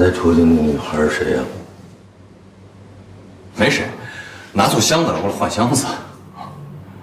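A young man asks a question calmly.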